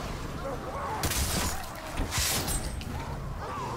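Heavy blows thud during a close fight.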